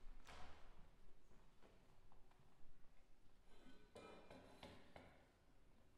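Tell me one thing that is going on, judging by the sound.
Footsteps cross a wooden stage in a large echoing hall.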